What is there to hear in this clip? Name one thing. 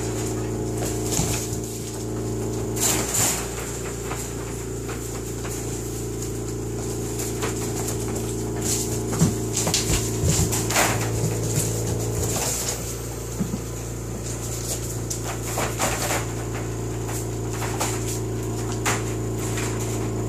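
Puppies scuffle and patter on a hard floor.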